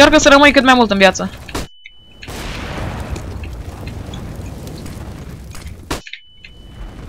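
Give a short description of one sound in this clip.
A fire roars and crackles nearby.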